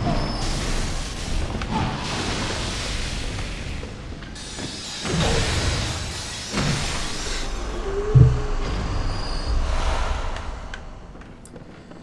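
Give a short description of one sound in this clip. Magic blasts whoosh and hiss in a game.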